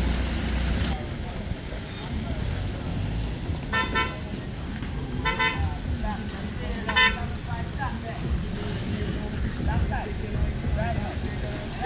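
Car engines idle in a line of slow traffic outdoors.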